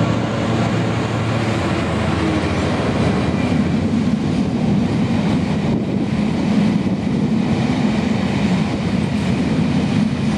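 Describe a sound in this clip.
A long freight train rumbles steadily past at a distance.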